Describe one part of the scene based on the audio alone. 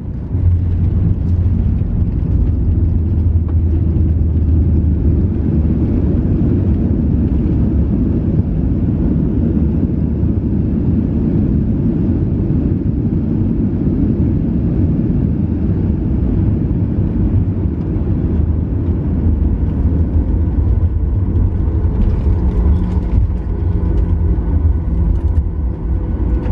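Wheels rumble over a runway beneath an airliner cabin.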